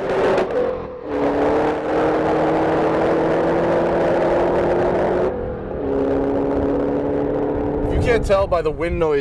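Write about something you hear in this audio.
A race car engine roars loudly and fades as the car speeds away.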